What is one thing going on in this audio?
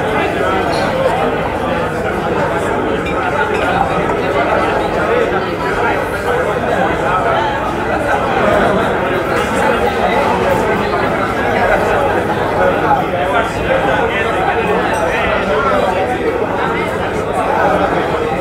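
A crowd of people chatters steadily.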